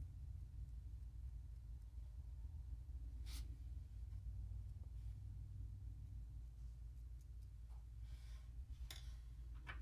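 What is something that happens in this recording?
Fingers rub and scrape a small wooden stick against tape, making soft brushing sounds.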